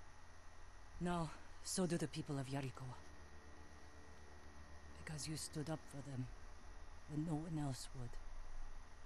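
A young woman speaks calmly and close by, in short phrases.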